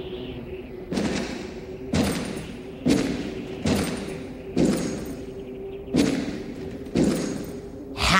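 Heavy boots thud slowly on the ground, step by step.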